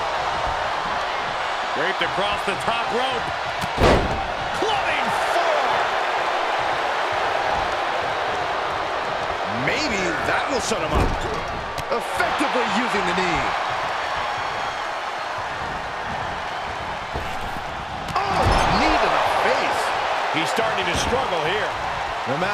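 A large crowd roars and cheers steadily throughout.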